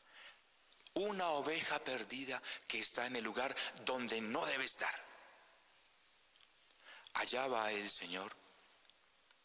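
A man speaks calmly in a reverberant room, heard through a microphone.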